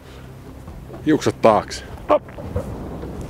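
A man speaks with animation close by, outdoors in wind.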